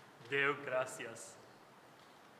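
An elderly man speaks calmly in an echoing hall.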